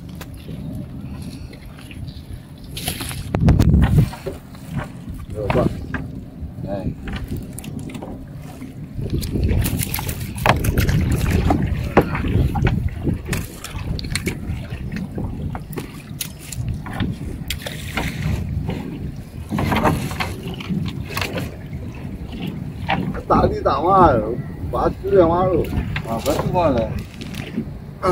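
A fishing net is hauled over a boat's side.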